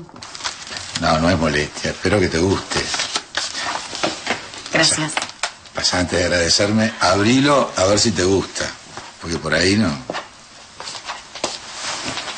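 An older man answers in a low voice, close by.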